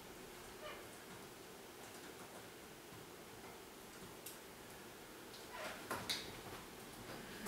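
A woman speaks calmly at a distance in a room with a slight echo.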